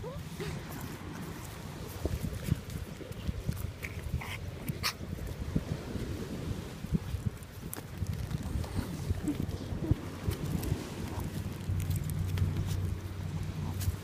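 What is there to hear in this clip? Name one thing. A small dog scrabbles and pants while climbing on a man.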